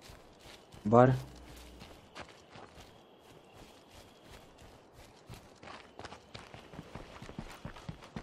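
Footsteps crunch softly on the ground outdoors.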